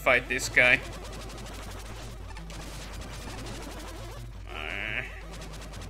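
Sharp electronic bleeps and zaps of a video game ring out.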